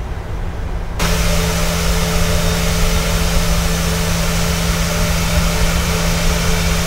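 Jet engines whine loudly and steadily from outside.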